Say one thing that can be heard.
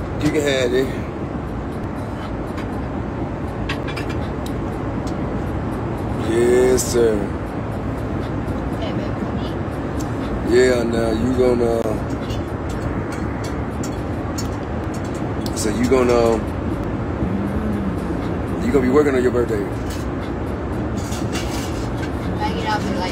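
Steady jet cabin noise hums throughout.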